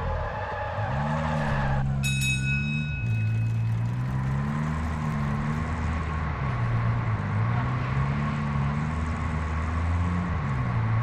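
Tyres rumble on a paved road.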